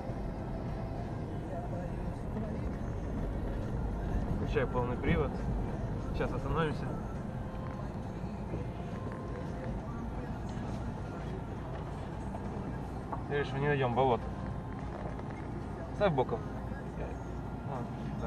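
A car bumps and rattles over a rough dirt track.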